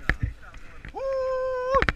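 A young man shouts excitedly up close.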